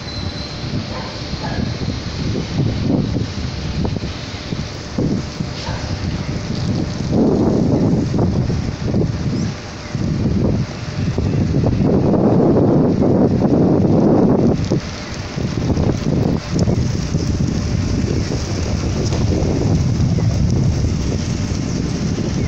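City traffic rumbles steadily in the distance.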